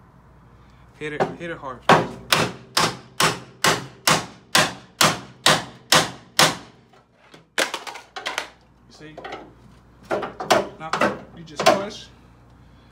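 A ball-peen hammer strikes a steel chisel against a car body in sharp metallic blows.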